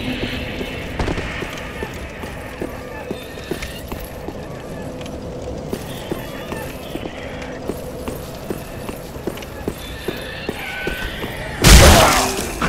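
Armoured footsteps clatter steadily on stone.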